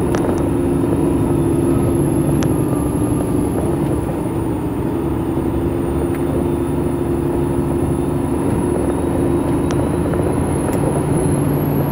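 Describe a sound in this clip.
A truck's diesel engine drones steadily from inside the cab.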